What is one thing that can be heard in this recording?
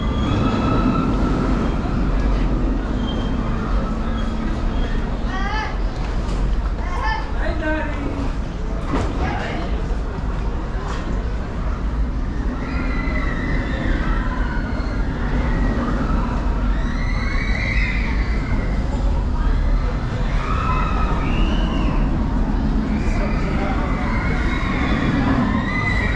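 Water rushes and splashes steadily as a small boat glides along a channel.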